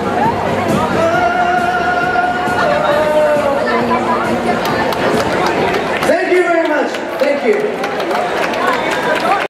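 Backing music plays loudly over loudspeakers.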